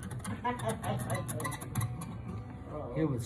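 An acoustic guitar is strummed close by.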